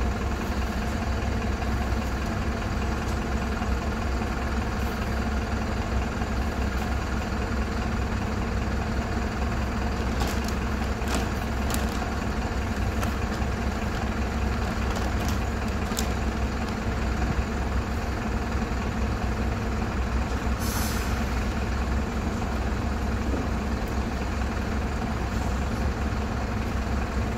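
A bus engine idles steadily close by.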